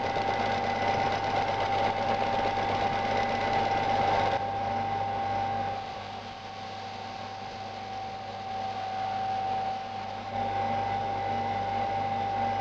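A belt sander motor hums steadily.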